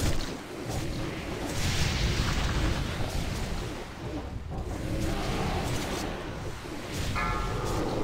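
Fire roars and crackles in a battle.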